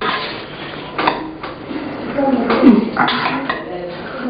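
A spoon scrapes and clinks against a metal bowl.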